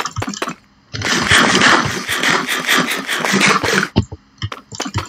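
Blocks break apart with a loud burst of crunching and clattering.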